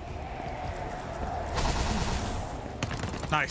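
A gust of wind whooshes past.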